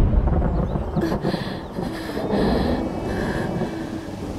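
A young woman sings a mournful song.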